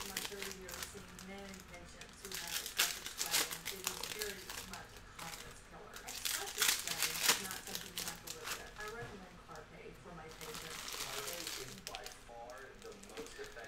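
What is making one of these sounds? Trading cards rustle and flick as a hand shuffles through a stack.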